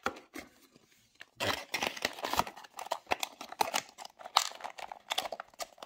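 A cardboard box rustles and scrapes in a hand.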